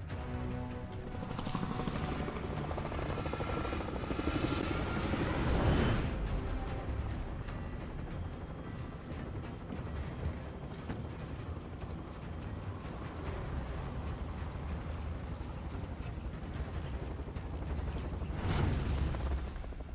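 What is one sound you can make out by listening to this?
Helicopter rotors thump loudly overhead.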